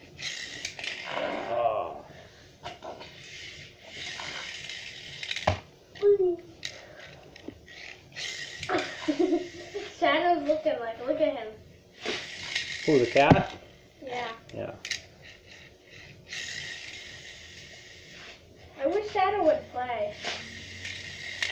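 A boy talks with animation close by.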